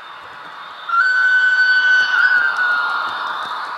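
A model locomotive's horn sounds briefly.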